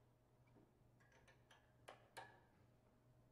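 A brass tuba clunks and rattles as it is lifted.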